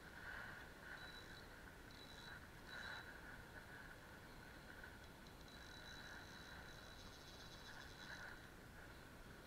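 A fishing reel clicks and whirs as it is wound in.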